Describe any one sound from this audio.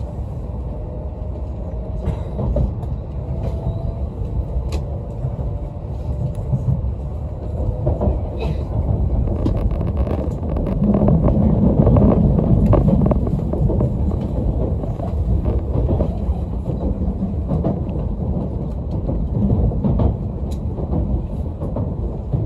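Train wheels click over rail joints.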